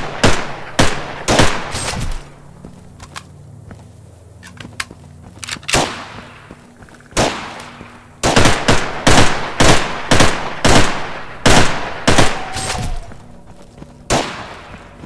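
Rifle shots fire in quick bursts, echoing outdoors.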